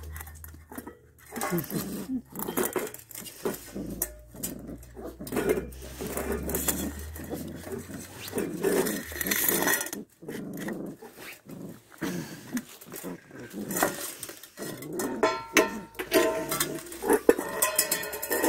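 A puppy laps and eats from a metal bowl.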